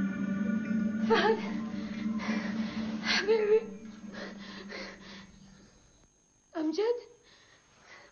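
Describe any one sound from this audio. A woman cries out in distress nearby.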